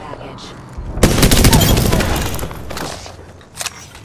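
A heavy gun fires loud blasts.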